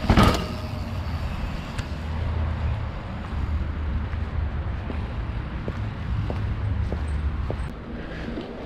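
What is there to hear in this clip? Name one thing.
A bicycle's rear suspension knocks dully with each push on the pedals.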